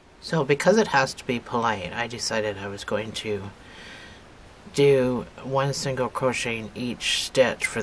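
A crochet hook softly scrapes and pulls yarn through stitches.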